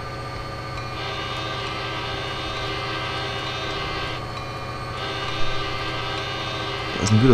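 A train horn blows in two long blasts.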